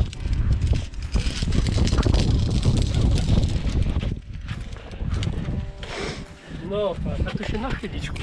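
Boots crunch and scrape on snow and rock.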